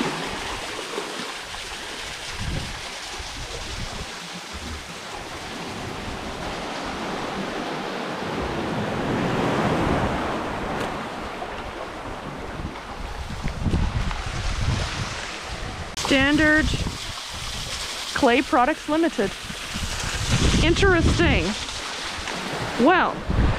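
A small waterfall splashes steadily onto rocks.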